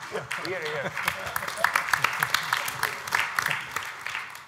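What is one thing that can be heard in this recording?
An audience claps in a large room.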